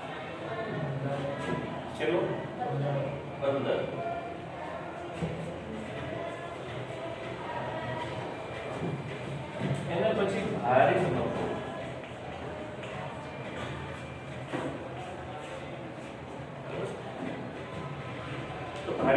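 A middle-aged man speaks calmly in an echoing room.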